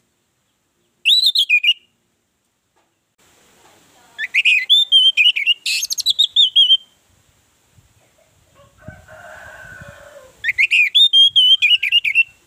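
An orange-headed thrush sings in bursts of loud, varied whistling phrases.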